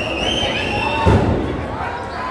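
A wrestler's body slams onto the ring mat with a thud.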